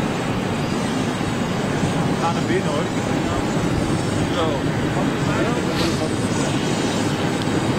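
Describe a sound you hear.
A tug engine rumbles steadily as it tows a jet airliner.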